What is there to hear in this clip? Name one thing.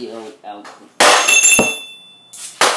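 A metal bar bangs hard against a metal box with a ringing clang.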